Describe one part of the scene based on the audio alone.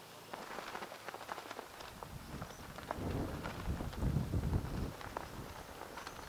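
Wind gusts outdoors, buffeting loudly.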